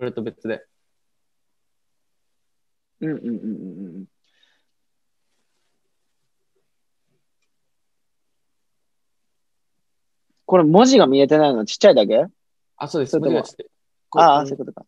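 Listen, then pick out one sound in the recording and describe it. A young man talks calmly over an online call, in short bursts with pauses.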